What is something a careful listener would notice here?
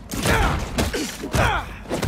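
Punches thud in a scuffle.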